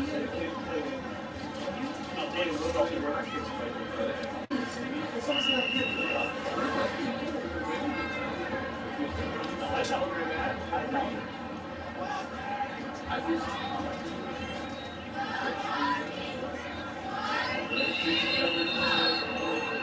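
A stadium crowd murmurs and cheers in a large open space.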